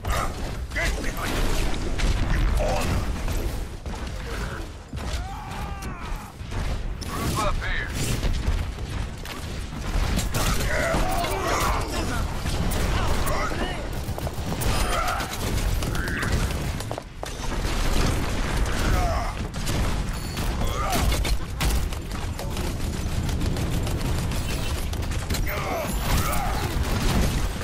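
Gunfire and explosions crackle and boom in a video game.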